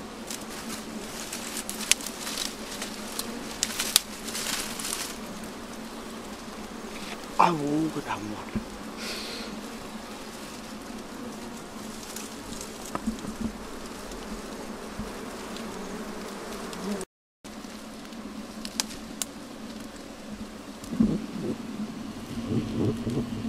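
A swarm of bees buzzes steadily up close.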